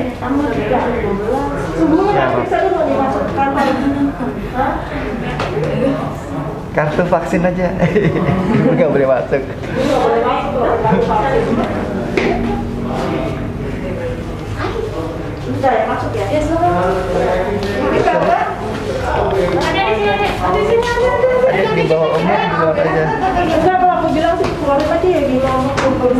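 A man and women talk close by, with animation.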